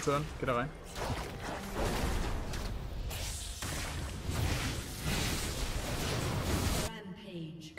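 Game spells and attacks crackle and whoosh in a busy fight.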